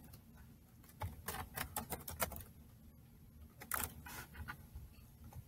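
Keys clatter in quick bursts of typing.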